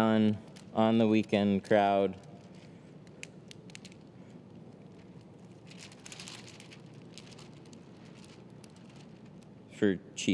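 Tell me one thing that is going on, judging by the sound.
Plastic film crinkles and rustles as it is peeled and handled.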